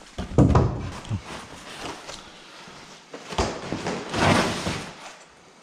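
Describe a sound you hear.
Stiff paper rustles and crinkles as it is pulled back.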